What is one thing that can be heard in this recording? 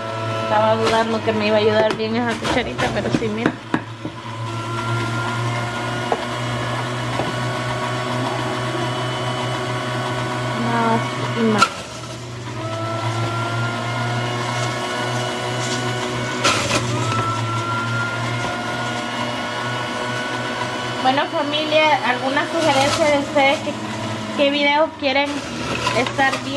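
A juicer motor whirs steadily.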